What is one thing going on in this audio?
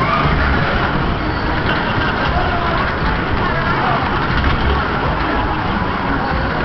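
A fairground ride whirls around with a loud rushing rumble.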